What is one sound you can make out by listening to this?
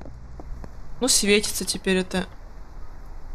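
A young woman speaks briefly with animation, close to a microphone.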